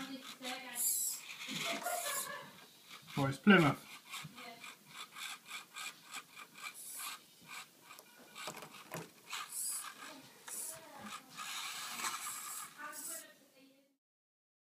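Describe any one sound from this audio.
A small electric motor whirs in short bursts.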